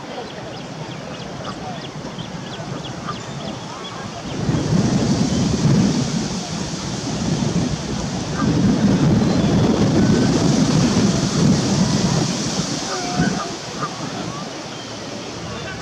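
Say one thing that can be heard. Water laps gently against a stone edge.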